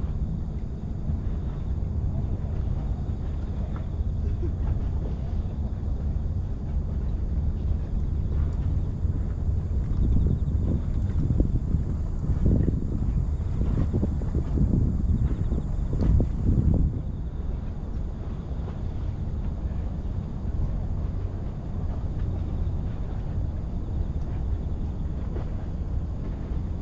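Small waves lap against a seawall.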